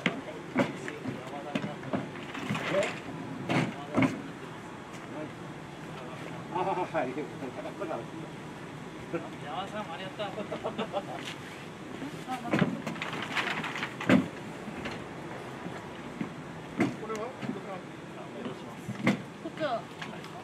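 Plastic crates knock and clatter as they are moved.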